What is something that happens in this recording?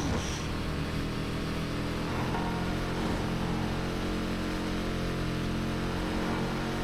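A car engine roars steadily at high revs.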